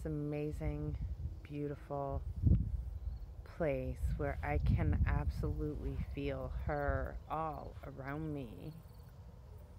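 A woman talks close up, with animation.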